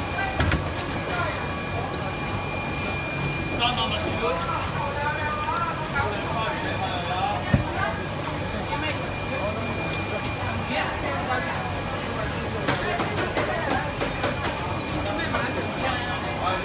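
Many people chatter nearby in a busy, echoing crowd.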